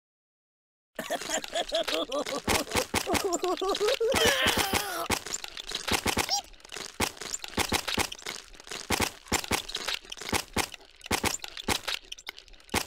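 A meat grinder crunches and squelches as it grinds.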